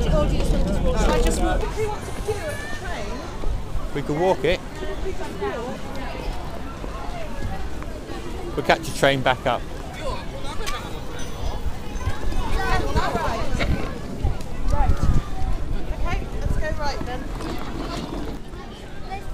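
A crowd of people chatter in the background outdoors.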